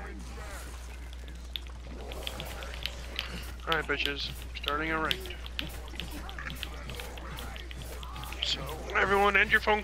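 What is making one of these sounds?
A blade hacks into flesh.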